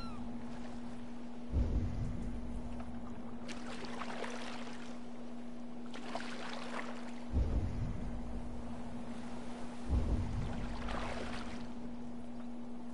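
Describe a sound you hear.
Water laps gently against a small wooden boat.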